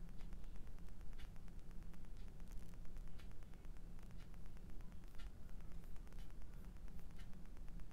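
A brush softly strokes across a canvas.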